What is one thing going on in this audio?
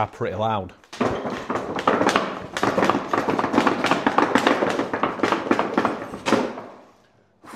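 Heavy boots step and thud on a hard floor.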